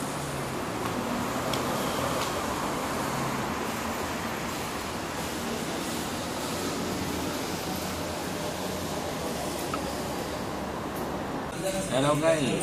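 A steady murmur of a busy street outdoors fills the air.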